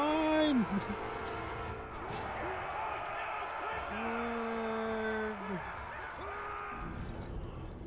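A crowd of orc warriors shouts and roars.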